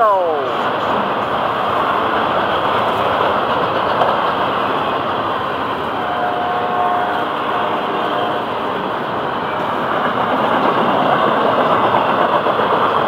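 A freight train rumbles and clatters steadily past on the tracks nearby.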